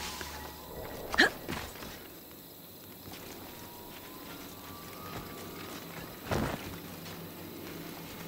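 Footsteps thud and scuff on wooden crates.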